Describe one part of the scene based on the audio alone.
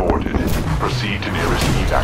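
A heavy gun fires rapid shots in a video game.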